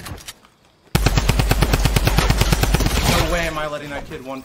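Rapid gunfire blasts from a video game.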